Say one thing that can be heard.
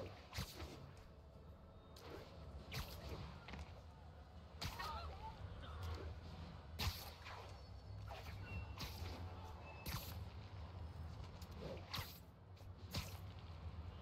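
Short snapping whooshes of web lines firing come again and again.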